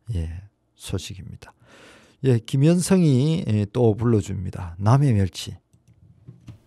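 An elderly man speaks cheerfully into a microphone.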